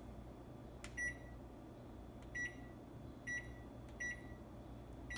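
A microwave's keypad beeps as buttons are pressed.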